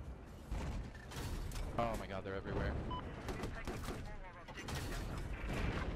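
Distant explosions thud.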